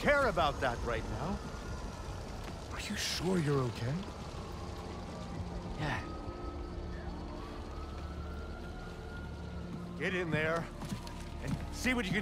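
An older man speaks with concern in a deep voice.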